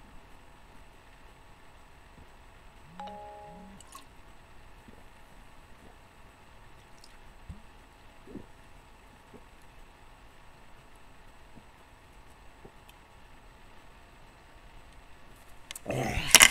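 A young man gulps a drink from a can.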